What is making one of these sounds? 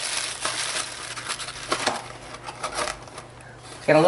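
A cardboard box lid slides shut.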